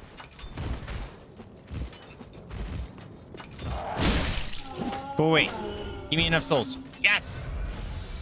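Swords clash and clang.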